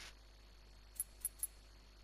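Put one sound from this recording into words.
Menu clicks sound a few times.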